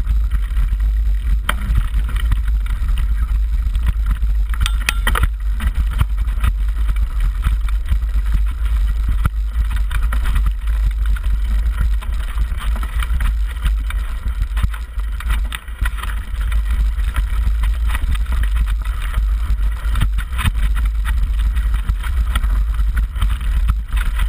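Bicycle tyres crunch and rattle over a rough dirt trail.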